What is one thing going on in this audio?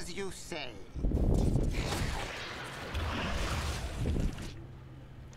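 Magic blasts crash and whoosh in a fight.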